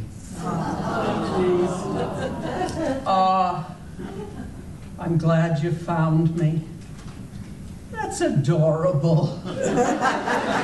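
An elderly man speaks theatrically.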